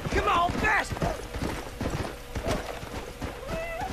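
A horse's hooves pound as it gallops over the ground.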